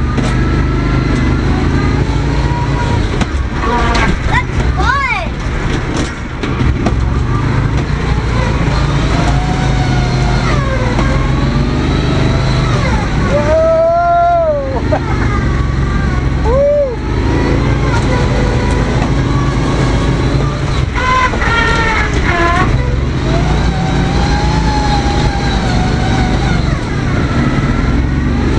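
A vehicle engine labours as it drives through mud.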